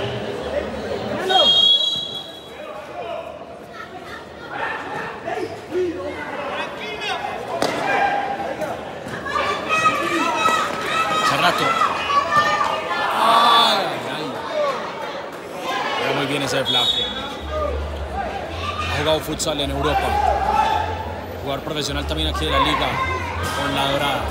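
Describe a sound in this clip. A large crowd cheers and shouts outdoors.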